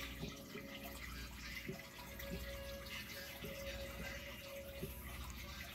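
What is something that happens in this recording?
Water bubbles steadily from an aquarium air pump.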